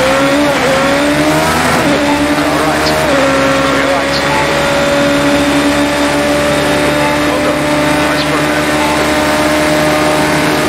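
A racing car engine screams at high revs, shifting gears and then holding a steady whine.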